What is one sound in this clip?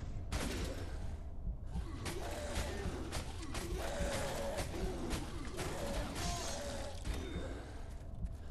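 A huge beast growls and roars loudly.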